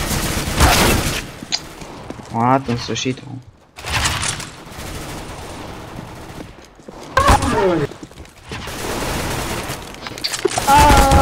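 A weapon clicks and clatters as it is handled.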